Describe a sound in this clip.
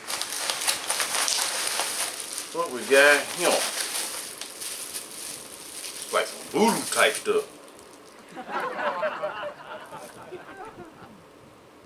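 A plastic bag crackles as a man handles it.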